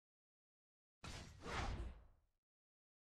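A video game plays a short whooshing sound effect.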